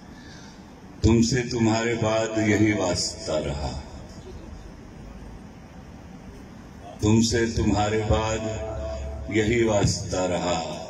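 A man sings loudly into a microphone, heard through loudspeakers.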